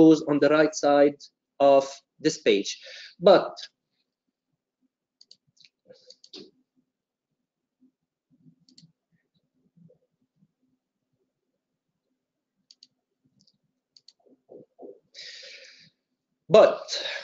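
A man speaks calmly into a microphone, in short bursts with long pauses.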